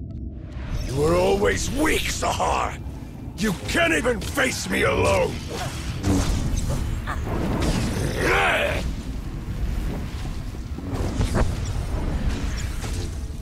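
Lightsabers hum and clash in a fight.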